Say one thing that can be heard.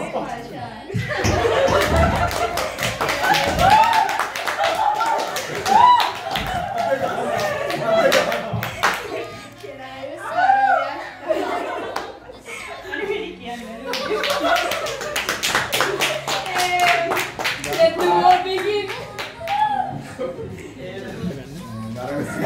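People clap their hands close by.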